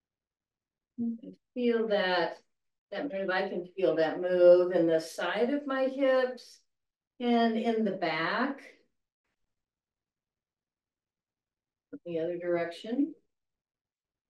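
An elderly woman speaks calmly through a microphone, giving instructions.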